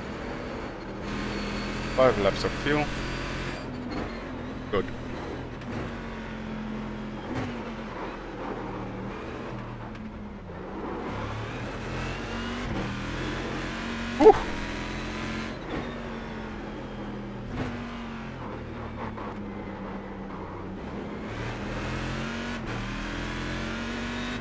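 A racing car engine roars and whines up and down through the gears.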